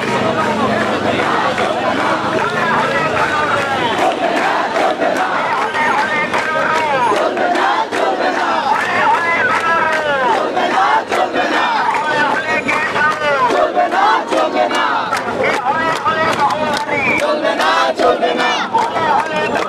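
Hands clap in the crowd.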